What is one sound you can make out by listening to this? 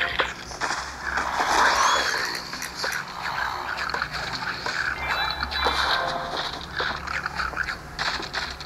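Cartoon plants pop and fire shots in quick succession.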